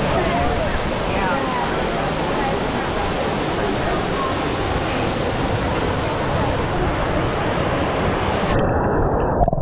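Water from a fountain splashes and gushes into a pool.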